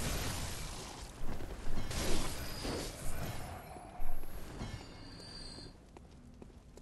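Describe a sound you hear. Blows and clashing sounds of a fight ring out.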